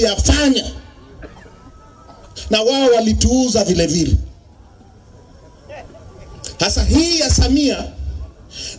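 A man speaks forcefully into a microphone over a loudspeaker, outdoors, in bursts with pauses.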